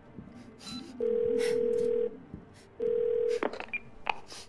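A phone's ringing tone purrs twice through a handset.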